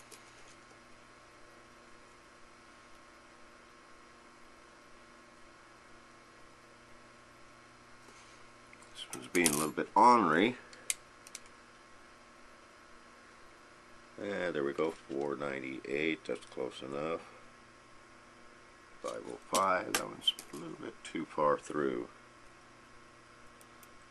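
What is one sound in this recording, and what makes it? Small metal parts click softly as a hand handles them.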